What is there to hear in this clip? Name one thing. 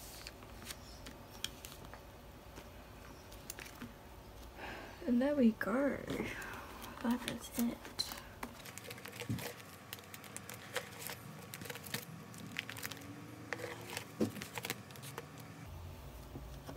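Plastic album sleeves rustle and crinkle as pages are turned by hand.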